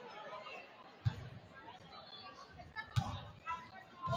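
A basketball bounces on a hardwood floor with echoing thuds.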